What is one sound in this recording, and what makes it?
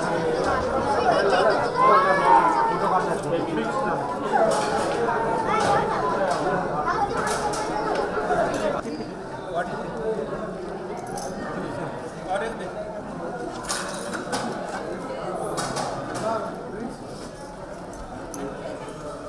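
A crowd of men and women chatter all around in a busy, echoing room.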